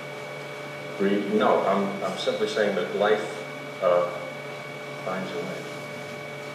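A man speaks calmly through a loudspeaker in an echoing room.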